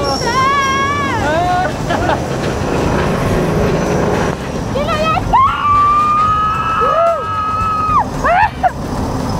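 A young woman screams and shrieks loudly close by.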